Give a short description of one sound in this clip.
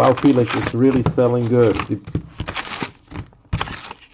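Cards slide and tap against each other.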